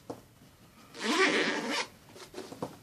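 A zipper slides open.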